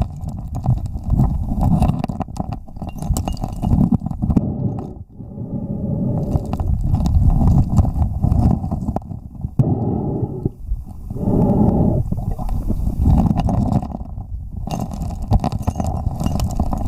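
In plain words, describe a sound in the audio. Muffled water churns and rumbles close by.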